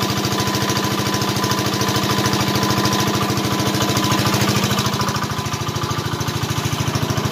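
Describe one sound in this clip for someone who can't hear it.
Water gushes from a pipe into a drum.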